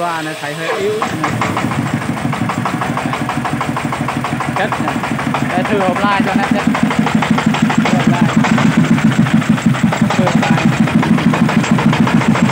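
A diesel engine chugs loudly in a rapid, steady rhythm.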